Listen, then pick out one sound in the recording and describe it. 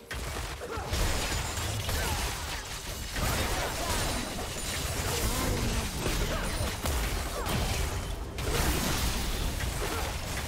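Game spell effects and attacks crackle and burst during a fight.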